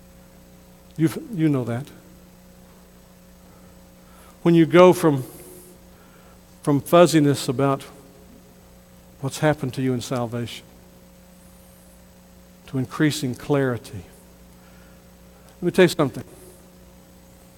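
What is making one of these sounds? A middle-aged man speaks slowly and earnestly through a microphone in a reverberant hall, pausing often.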